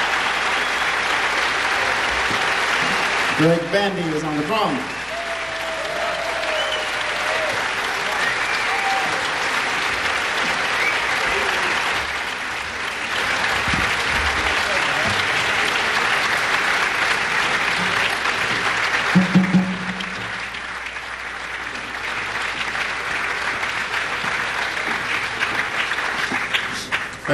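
A large audience applauds and cheers in a big hall.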